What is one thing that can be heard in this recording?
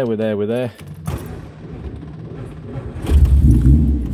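A key clicks in an ignition.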